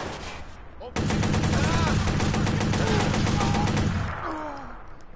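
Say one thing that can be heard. An automatic rifle fires rapid bursts at close range.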